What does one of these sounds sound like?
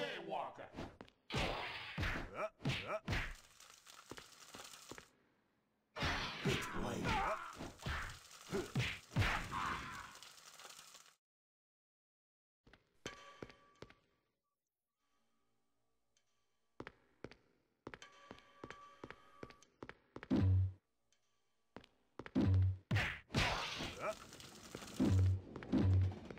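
Heavy punches and blows thud in a fight.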